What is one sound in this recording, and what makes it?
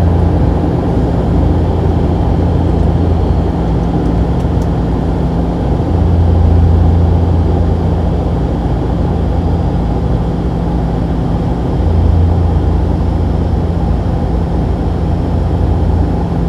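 An aircraft engine drones steadily inside a cabin.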